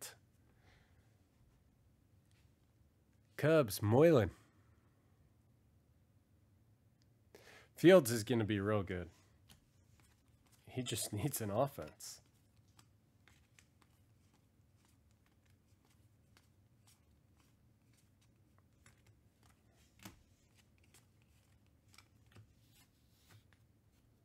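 Trading cards flick and rustle softly as they are handled and shuffled.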